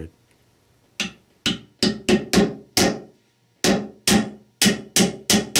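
A hammer taps on a metal seal driver with short, ringing knocks.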